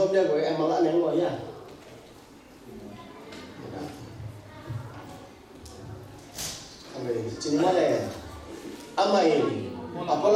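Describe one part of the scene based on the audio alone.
A man speaks calmly into a microphone, heard through loudspeakers in an echoing hall.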